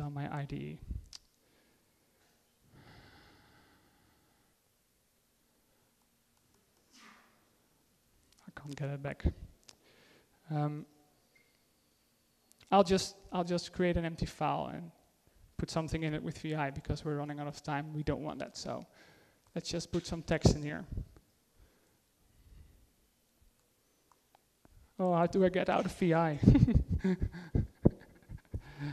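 A man speaks calmly into a microphone, heard over loudspeakers in a hall.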